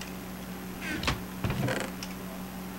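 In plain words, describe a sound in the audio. A wooden chest creaks open.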